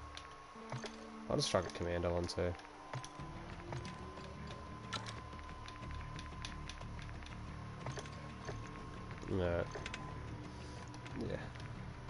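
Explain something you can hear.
Short electronic menu clicks sound as options are selected.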